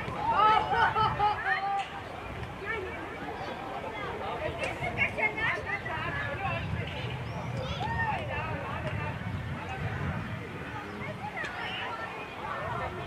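Children shout and call out to each other outdoors.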